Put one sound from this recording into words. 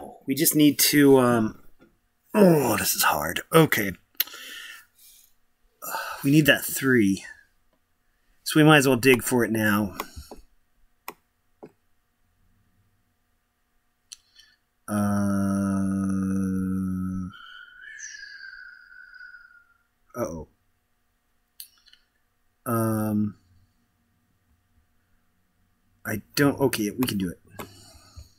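A young man talks casually and close to a microphone, in short bursts.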